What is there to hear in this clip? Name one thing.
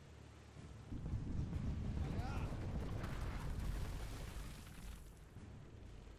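Cannons boom in a heavy, rumbling volley.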